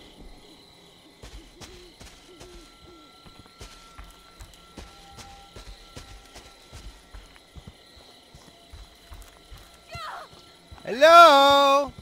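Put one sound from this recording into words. Footsteps thud on a dirt path.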